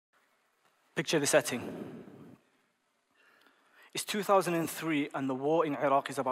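A young man speaks calmly through a microphone in a large hall.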